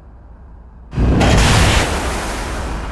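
Wind rushes loudly.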